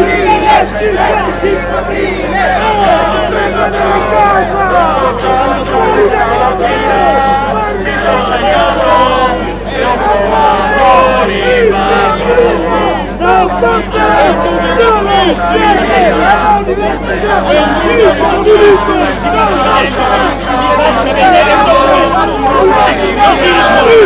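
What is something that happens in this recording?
A dense crowd of men and women talks and shouts all at once, close by, outdoors.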